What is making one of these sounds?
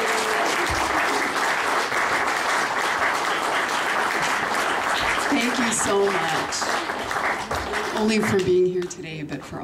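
A crowd applauds loudly in an echoing hall.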